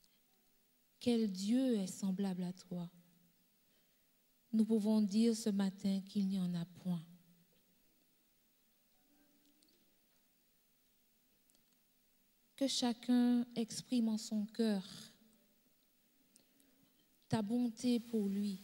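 An elderly woman speaks with feeling into a microphone, in short bursts with pauses.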